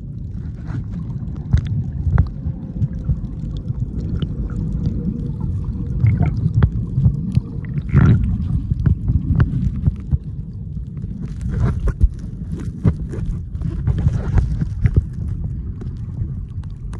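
Water rumbles and sloshes heavily, heard from underwater.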